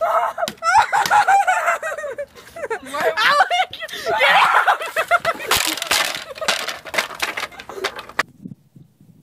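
A stick cracks and splashes through thin ice.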